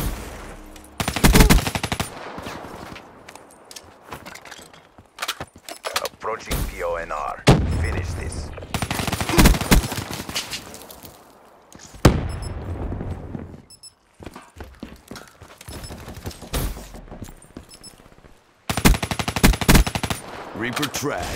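A video game automatic rifle fires in rapid bursts.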